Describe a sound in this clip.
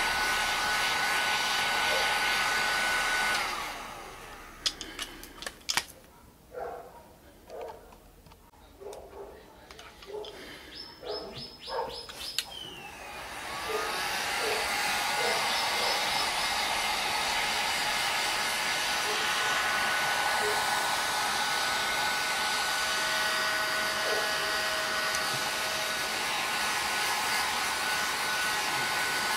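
A heat gun blows with a steady, loud whooshing roar.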